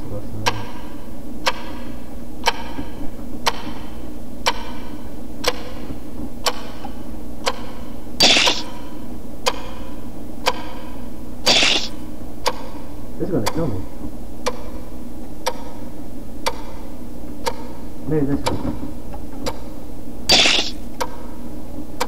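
A clock ticks steadily, once a second.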